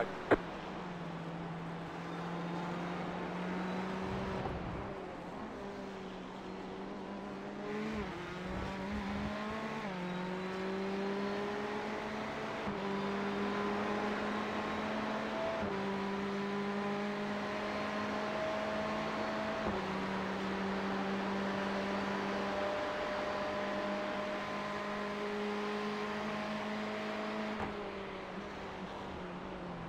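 A race car engine drones and revs steadily, shifting up through the gears.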